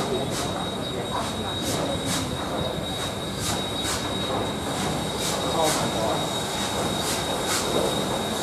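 A steam locomotive chuffs rhythmically as it pulls slowly into the station.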